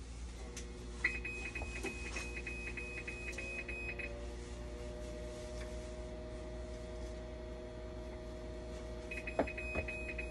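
A dialysis machine's alarm beeps in a rapid series.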